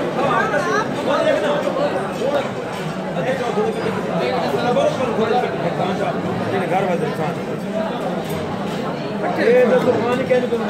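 Many men chatter at once in a large echoing hall.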